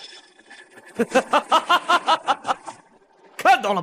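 A man laughs in short bursts.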